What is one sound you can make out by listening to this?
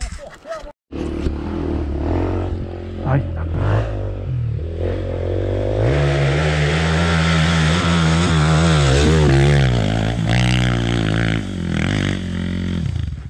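Another dirt bike engine idles and revs nearby.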